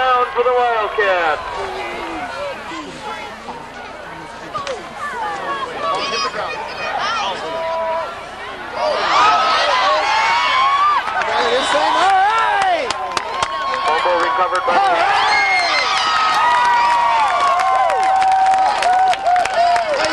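Men shout and call out nearby.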